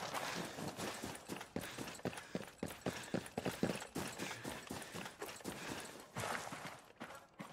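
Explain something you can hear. Boots crunch on snow.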